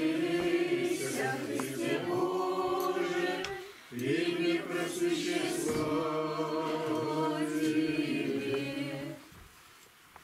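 A group of women sing a slow chant together.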